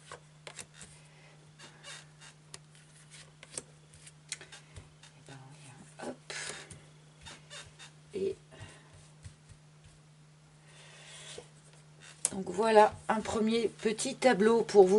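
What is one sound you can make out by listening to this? Playing cards tap and slide softly on a table.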